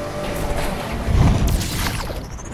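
A car lands hard with a thud after a jump.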